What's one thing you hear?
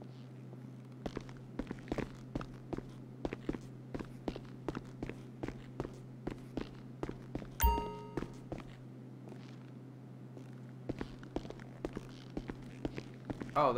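Footsteps run quickly up hard stairs and across a floor.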